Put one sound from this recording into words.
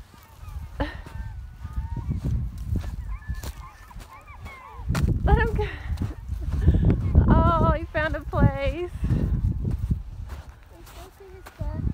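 Footsteps crunch on coarse sand and gravel.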